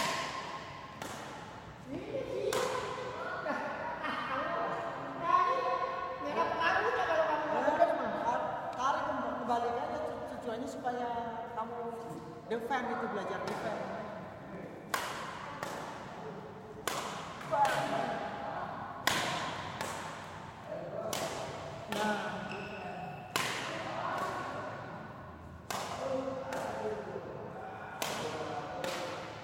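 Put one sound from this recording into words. A badminton racket strikes a shuttlecock again and again in an echoing hall.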